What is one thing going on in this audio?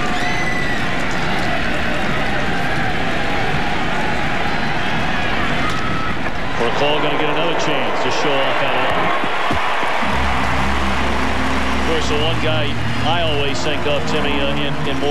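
A large stadium crowd murmurs and cheers throughout.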